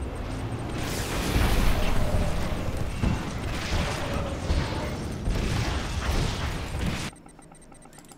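Energy weapons fire and blasts crackle during a battle.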